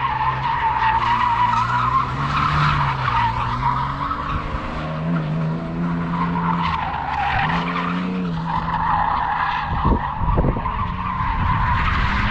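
The engine of a BMW E46 330Ci revs hard in the distance.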